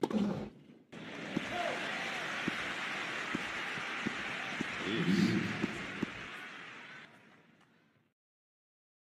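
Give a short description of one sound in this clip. A crowd applauds and cheers in a large open arena.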